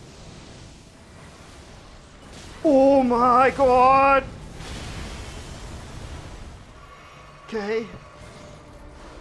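A magical blast roars and crackles.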